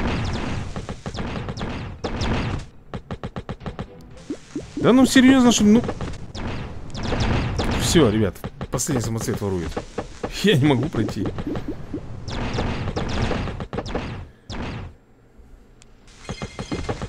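Game battle sounds of clanging, blasts and bursts play in quick succession.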